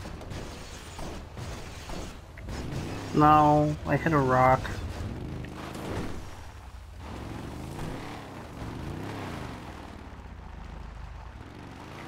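Tyres crunch over rough, rocky ground.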